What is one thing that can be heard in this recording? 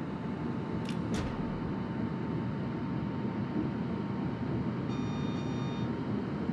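A warship's engine rumbles low and steady.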